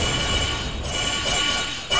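A crackling energy blast roars loudly.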